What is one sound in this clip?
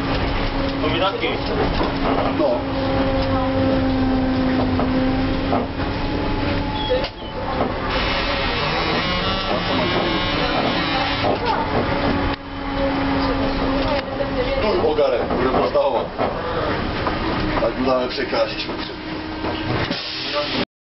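Tram wheels rumble and clatter on the rails.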